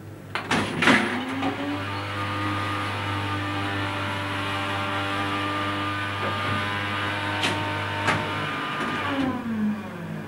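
A machine hums steadily while it dispenses.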